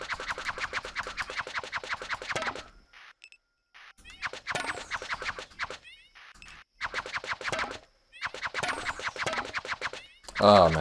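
Electronic game music plays with quick, clicking beats.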